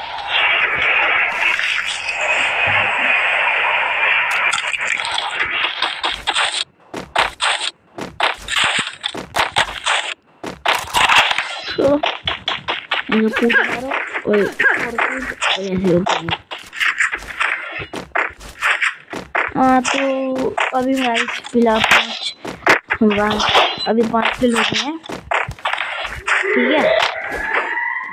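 Footsteps run quickly over grass and hard ground.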